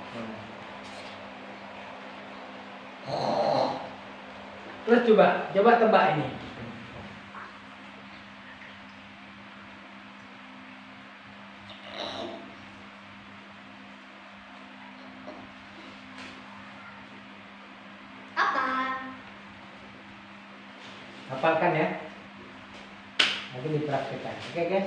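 A young boy speaks and laughs nearby.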